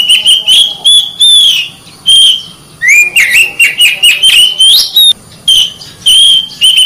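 A songbird sings loud, varied whistling phrases close by.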